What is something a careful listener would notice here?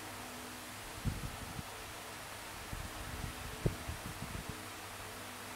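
Fingertips tap and rub softly on a glass touchscreen.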